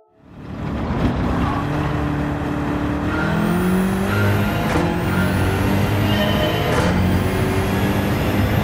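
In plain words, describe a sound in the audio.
A racing car engine idles and then revs up loudly, shifting through gears.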